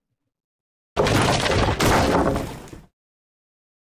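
A large mirror crashes to the floor and shatters.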